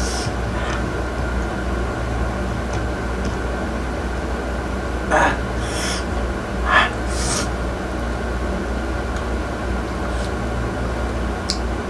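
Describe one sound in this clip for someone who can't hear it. A man chews and smacks his lips while eating.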